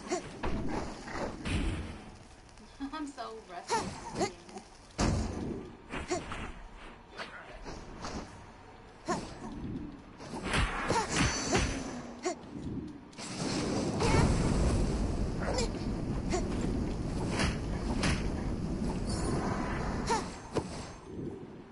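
Blades slash and strike in quick, sharp hits.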